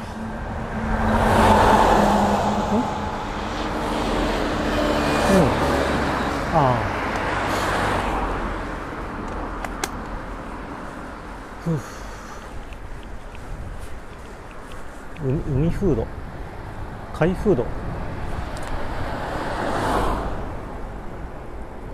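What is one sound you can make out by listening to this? Wind buffets steadily throughout.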